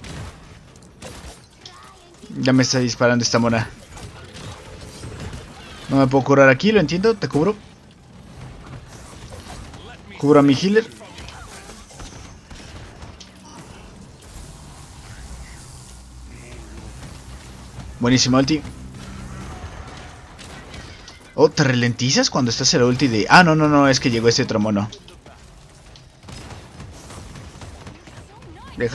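Energy weapons fire in quick bursts with electronic zaps.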